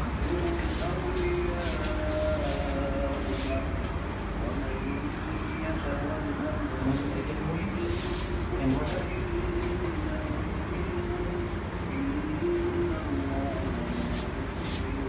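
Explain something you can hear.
Cloth rustles as it is handled.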